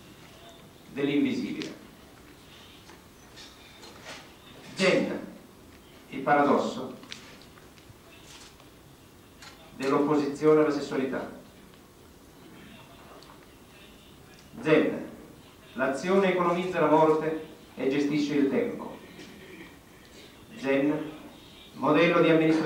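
A young man reads aloud slowly into a microphone, with pauses between phrases.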